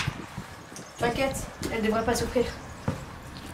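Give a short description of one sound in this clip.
A young woman talks on a phone close by.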